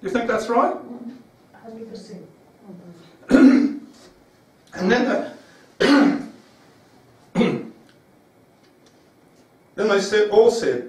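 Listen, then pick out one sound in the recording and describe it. An adult man speaks in short bursts in a room with some echo.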